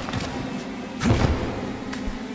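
A heavy thud sounds as someone lands.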